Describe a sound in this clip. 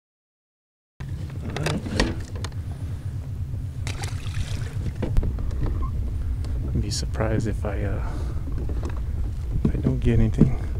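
Water laps gently against a small boat's hull.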